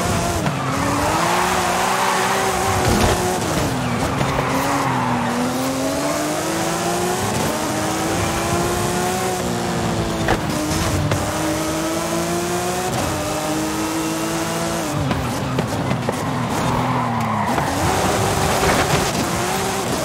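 Tyres screech as a car drifts around corners.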